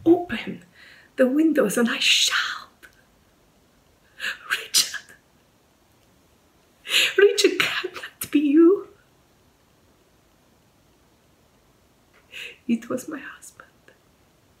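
A middle-aged woman speaks close to the microphone, with emotion and pauses.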